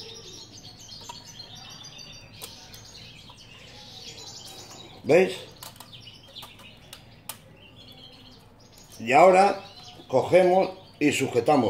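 Thin metal wires of a small cage click and rattle as hands handle it.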